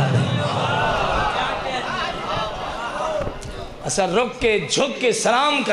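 A man recites loudly and with passion into a microphone, heard through a loudspeaker.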